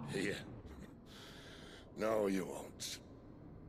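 A man speaks in a strained voice, close by.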